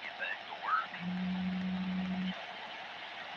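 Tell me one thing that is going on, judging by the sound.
A radio gives a short, steady beep.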